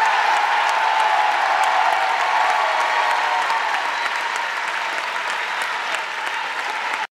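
A large crowd applauds loudly in a big hall.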